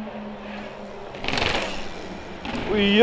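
A bicycle lands hard on pavement with a thud.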